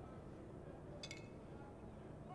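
Glass bottles clink together in a toast.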